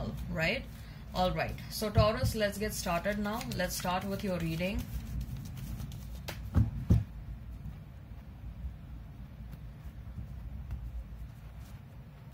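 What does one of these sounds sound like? Cards shuffle with soft flicks and rustles.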